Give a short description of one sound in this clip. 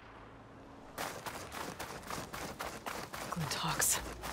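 Footsteps crunch quickly through sand.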